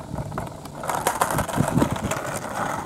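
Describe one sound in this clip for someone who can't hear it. A skateboard clacks as a foot presses its tail.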